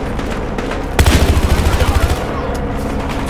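A gun fires rapid loud bursts.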